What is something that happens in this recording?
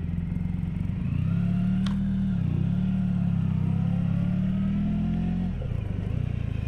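A motorcycle engine revs up and down as the bike rounds a bend.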